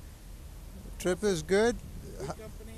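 A man in a helmet speaks briefly nearby.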